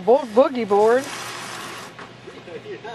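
A plastic lounge chair scrapes across concrete.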